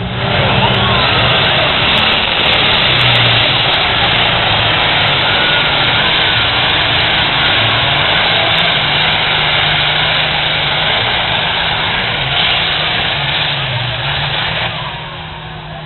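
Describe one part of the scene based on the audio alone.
A pulling tractor's engine roars at full throttle outdoors.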